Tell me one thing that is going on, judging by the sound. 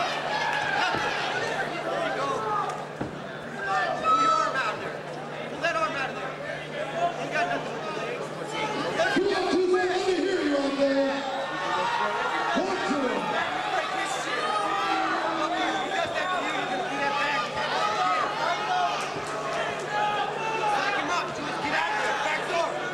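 Men in the crowd yell.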